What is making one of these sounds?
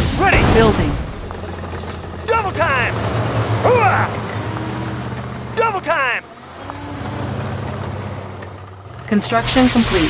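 Vehicle engines rumble steadily.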